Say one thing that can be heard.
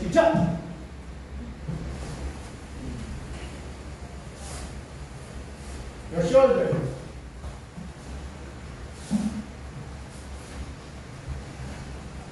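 Bare feet thump and shuffle on a padded mat.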